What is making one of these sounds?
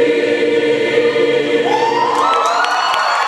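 A large choir holds a final loud chord in a big echoing hall.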